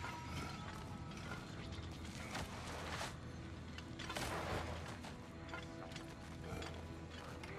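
Leaves and undergrowth rustle.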